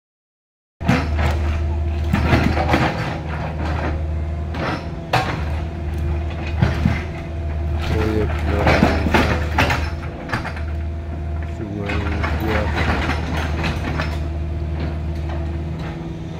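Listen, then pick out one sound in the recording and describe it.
A diesel engine of an excavator rumbles steadily close by.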